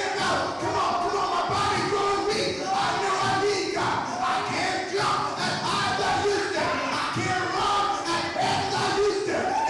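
A man preaches loudly and with passion into a microphone, echoing in a large hall.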